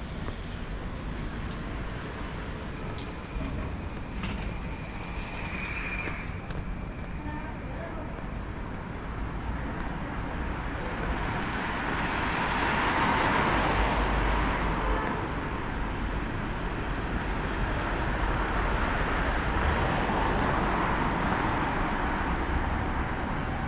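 Footsteps walk steadily along a pavement.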